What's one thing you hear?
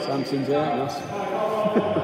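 Young men call out to each other loudly in an echoing hall.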